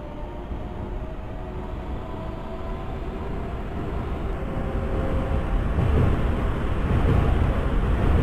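A subway train approaches and rumbles louder as it pulls in.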